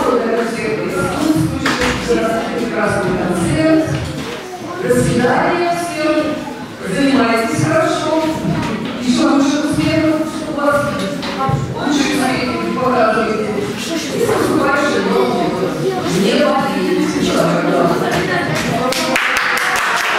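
A woman speaks with animation into a microphone over a loudspeaker.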